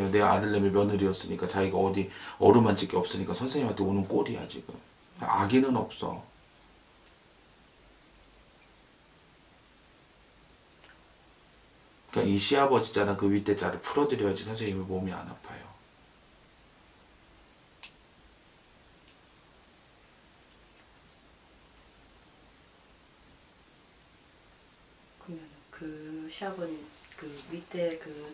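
A young man talks calmly and close by, with pauses.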